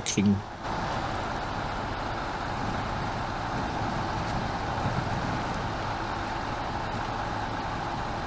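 Truck tyres splash through mud and puddles.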